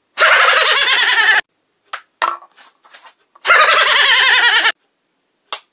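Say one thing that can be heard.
A young man laughs loudly and wildly, close by.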